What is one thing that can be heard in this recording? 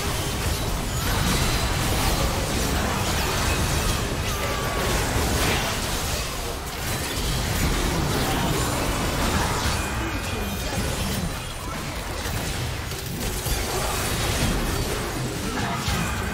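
Spell blasts, clashes and explosions from a video game battle crackle and boom throughout.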